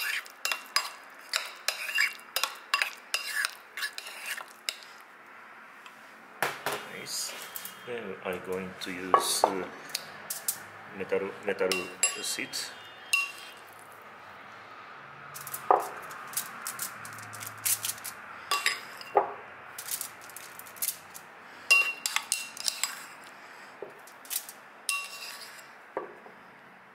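A metal spoon scrapes and clinks against a ceramic bowl.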